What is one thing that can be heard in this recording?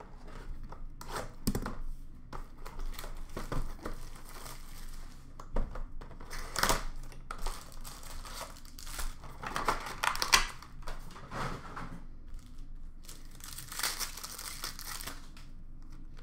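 Plastic wrap and cardboard crinkle and rustle as a box is opened.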